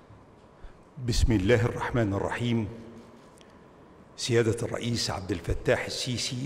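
An elderly man speaks calmly and formally through a microphone in a large hall.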